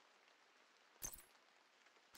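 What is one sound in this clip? A game menu gives a short click as a selection is made.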